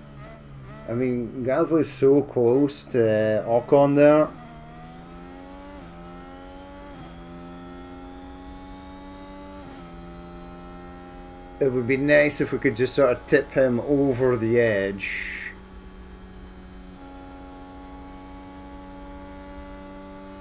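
A racing car engine whines steadily, rising and falling in pitch.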